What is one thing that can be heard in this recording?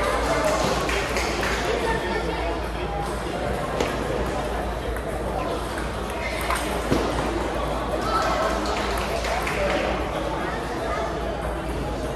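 Table tennis balls click sharply on paddles and tables in a large echoing hall.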